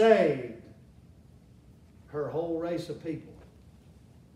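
A middle-aged man speaks emphatically through a microphone, in short bursts.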